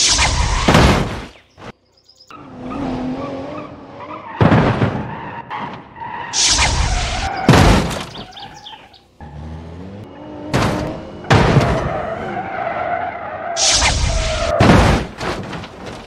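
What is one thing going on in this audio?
Metal crashes and clangs in loud impacts.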